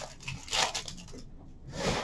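Plastic wrapping crinkles in a hand.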